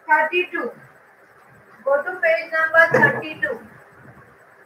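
A young woman speaks nearby with animation.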